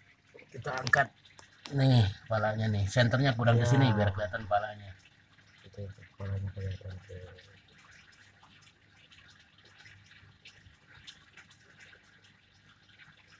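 Water trickles and drips down a wall.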